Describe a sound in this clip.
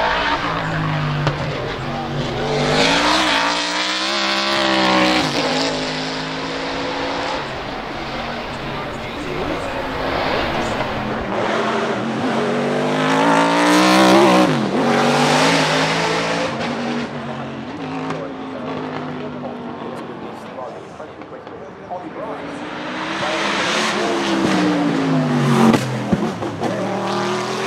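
A racing car engine revs up and drops sharply with each gear change.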